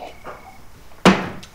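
A mug knocks down onto a wooden table.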